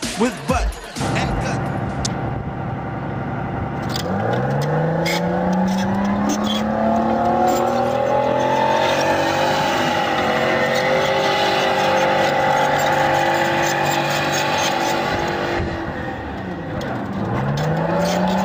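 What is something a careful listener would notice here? A tracked vehicle's engine roars and revs as it turns in place.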